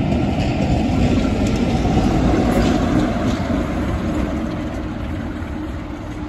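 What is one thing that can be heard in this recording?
A locomotive engine drones loudly as it passes.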